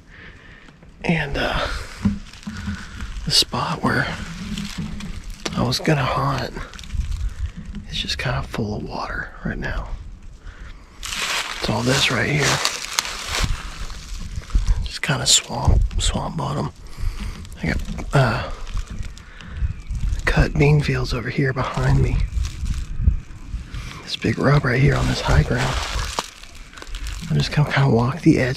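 A man talks calmly and close up, outdoors.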